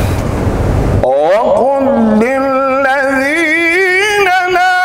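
A man chants in a long, wavering, melodic voice through a microphone.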